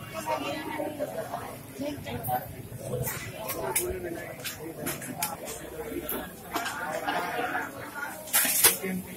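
A metal spatula scrapes and clinks across a hot griddle.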